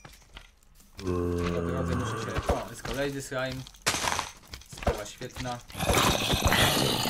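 A zombie groans nearby.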